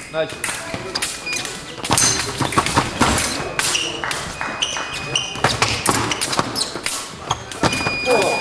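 Fencing blades clash and clatter sharply.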